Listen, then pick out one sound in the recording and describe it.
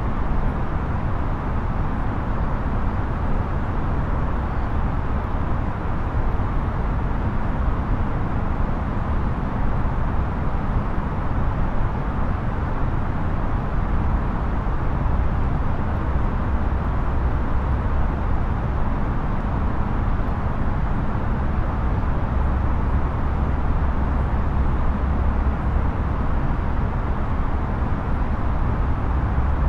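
A steady low roar of jet engines and air fills an aircraft cockpit.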